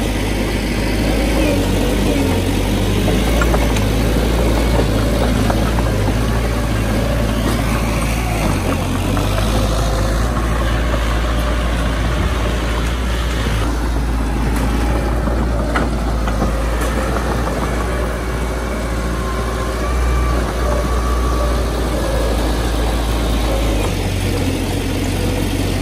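A small bulldozer's diesel engine rumbles steadily close by.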